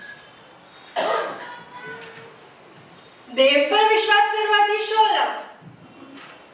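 A second young woman speaks loudly through a microphone.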